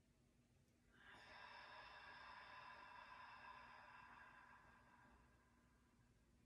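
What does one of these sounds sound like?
A young woman chants a long, steady, soft note.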